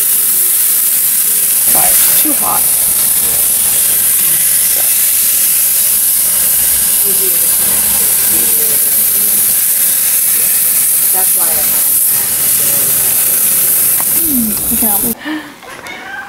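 Meat sizzles on a hot grill with a steady hiss.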